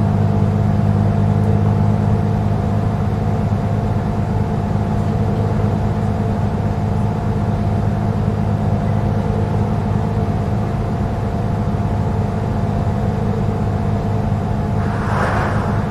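A bus engine hums steadily at speed.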